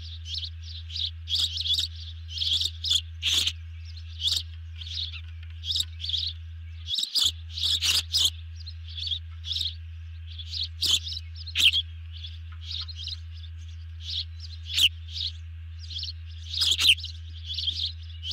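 A large bird of prey chirps close by in short, shrill, repeated calls.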